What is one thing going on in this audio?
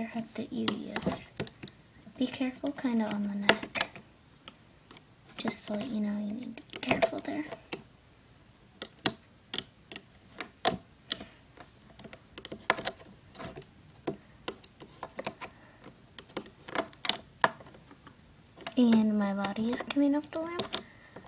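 Rubber bands snap and plastic parts click softly as a hook works them on a loom.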